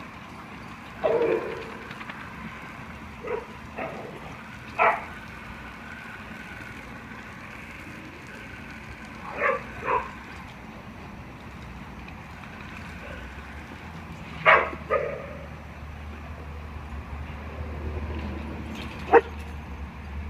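Dogs bark sharply in short bursts close by.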